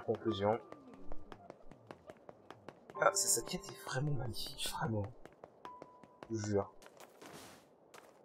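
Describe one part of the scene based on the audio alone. Quick footsteps run across stone paving.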